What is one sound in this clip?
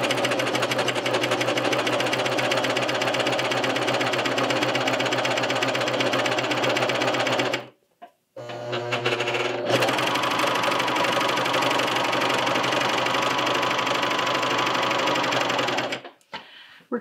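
A sewing machine whirs and rattles rapidly as it stitches, pausing briefly once.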